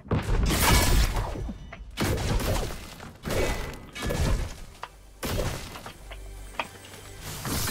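A pickaxe strikes wood with sharp, repeated thuds.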